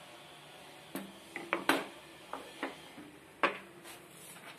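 A wooden board knocks and clatters against a table top.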